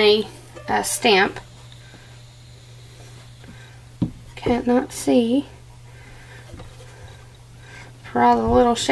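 A soap block scrapes softly against a wooden board.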